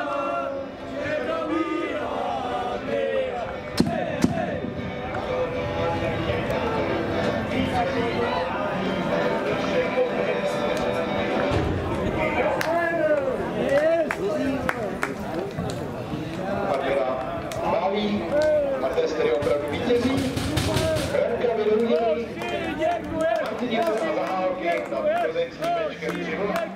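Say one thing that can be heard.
Many men talk and call out outdoors, some close by and some across an open field.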